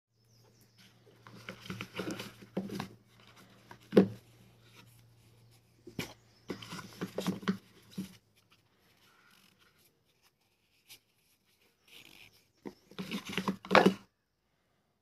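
Items rustle and knock as hands lift them out of a cardboard box.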